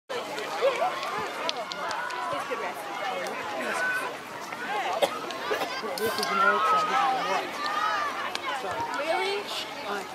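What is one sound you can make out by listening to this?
A crowd of children shout and cheer excitedly outdoors.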